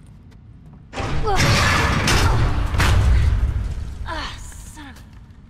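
A heavy rumbling crash and clatter bursts out and then fades.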